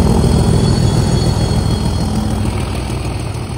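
A diesel locomotive roars past close by.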